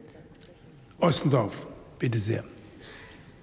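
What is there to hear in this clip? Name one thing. An elderly man speaks briefly into a microphone.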